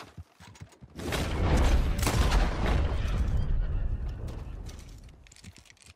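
A rifle fires a loud shot that rumbles and echoes away.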